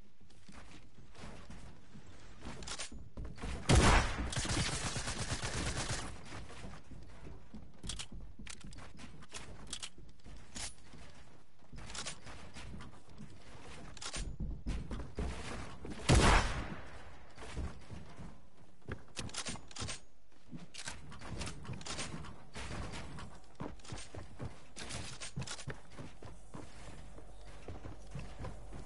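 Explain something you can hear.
Building pieces snap into place with quick clicks and clatters.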